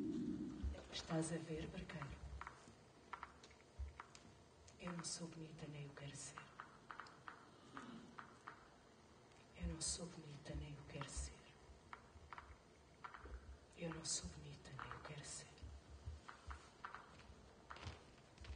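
A young woman speaks slowly in short, spaced phrases.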